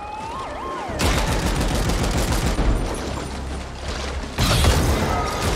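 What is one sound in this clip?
Gunfire crackles rapidly.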